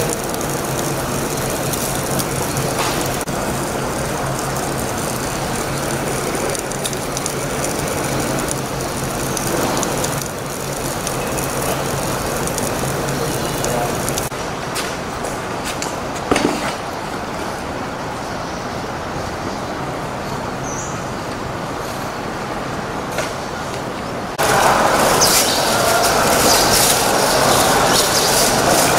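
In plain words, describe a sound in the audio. An escalator hums steadily as it runs.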